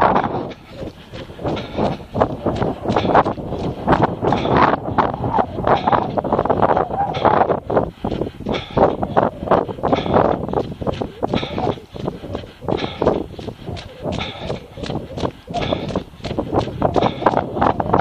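Footsteps crunch steadily on a wet, snowy path.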